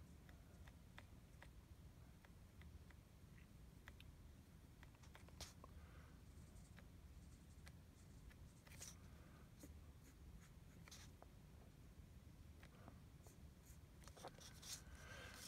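A pencil taps and scratches softly on paper.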